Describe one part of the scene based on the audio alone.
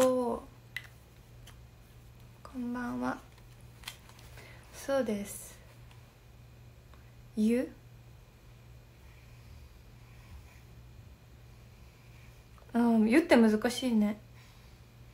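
A young woman speaks softly in short bursts, close to a microphone.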